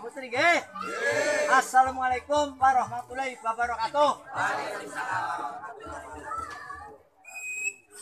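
An elderly man chants loudly in a sing-song voice, close by.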